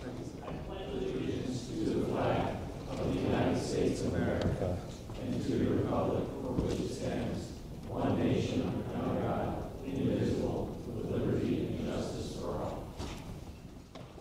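A crowd of men and women recites together in unison in a large echoing room.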